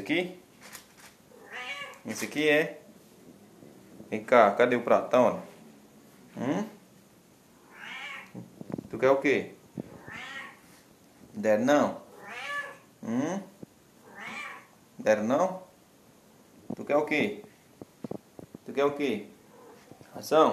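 A kitten meows loudly and repeatedly, close by.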